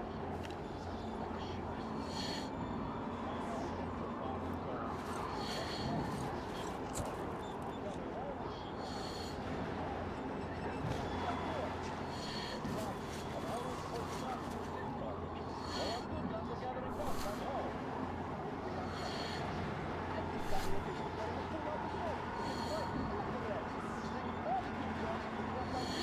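Wind howls steadily through a snowstorm.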